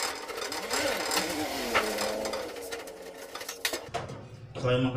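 A knife cuts through a tray of brownies and scrapes on metal.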